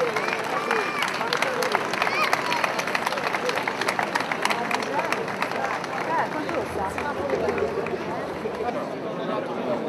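Many feet stamp in step on stone pavement.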